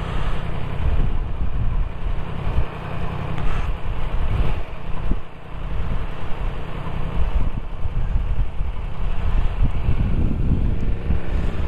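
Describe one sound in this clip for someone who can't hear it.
A motorcycle engine idles low and steady.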